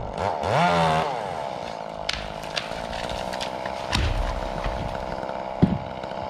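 A tall tree falls with branches cracking and snapping.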